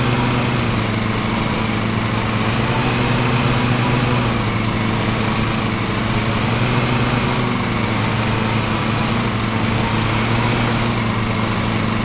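Mower blades cut through grass with a constant whir.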